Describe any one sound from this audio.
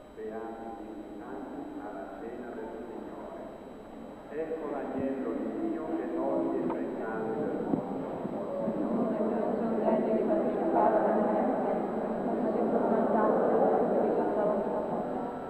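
An elderly man speaks steadily into a microphone, with slight echo.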